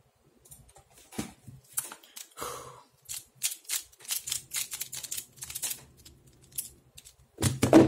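Plastic puzzle pieces click and rattle quickly as they are turned.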